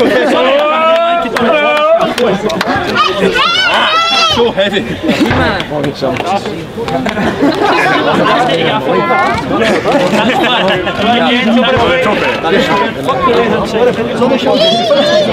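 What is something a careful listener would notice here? A group of young men cheer and shout loudly outdoors.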